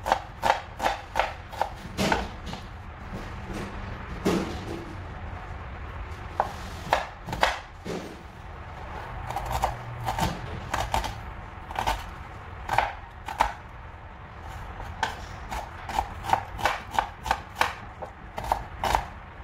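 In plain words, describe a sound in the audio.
A knife chops on a wooden board in quick, sharp taps.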